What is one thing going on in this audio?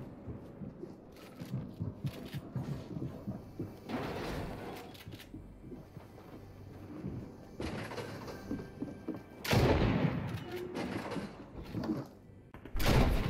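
Footsteps thud quickly on wooden floorboards.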